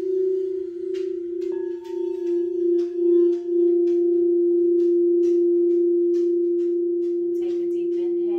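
A mallet taps against crystal bowls with light clinks.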